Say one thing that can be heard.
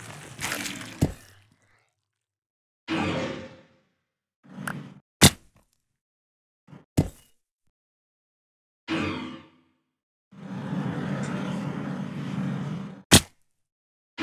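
Stone blocks are set down with short, sharp knocks.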